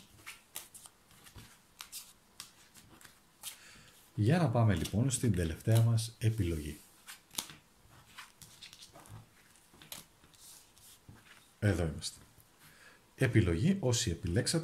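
Paper cards slide and tap on a table.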